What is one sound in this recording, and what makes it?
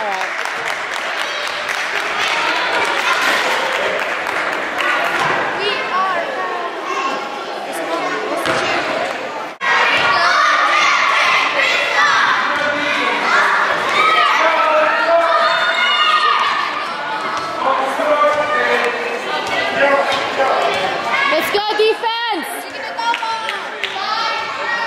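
A crowd of children and adults chatters and shouts in a large echoing gym.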